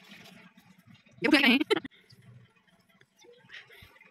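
Feet shuffle on loose soil.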